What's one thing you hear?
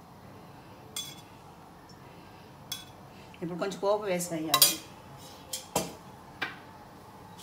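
A metal tin clinks and taps against metal.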